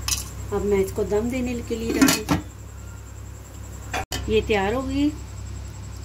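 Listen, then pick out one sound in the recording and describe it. A metal lid clanks on a pot.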